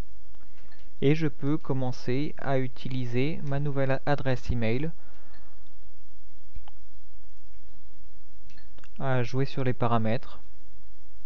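A young man speaks calmly into a headset microphone, close up.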